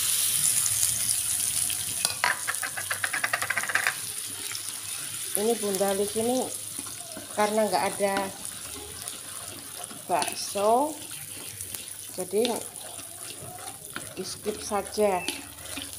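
A spatula scrapes against a metal wok.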